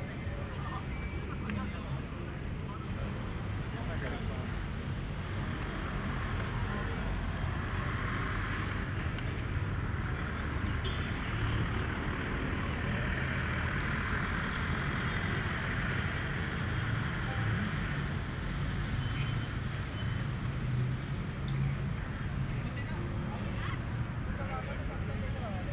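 A crowd murmurs outdoors in steady background noise.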